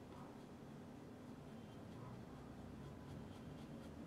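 A brush scrapes softly across canvas.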